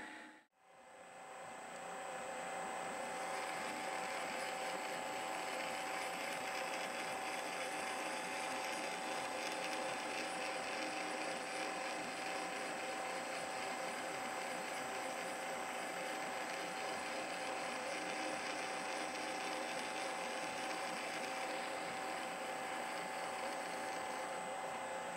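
A milling machine hums steadily nearby.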